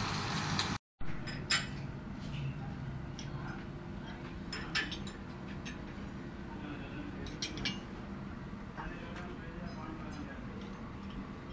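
A wrench clinks against metal parts.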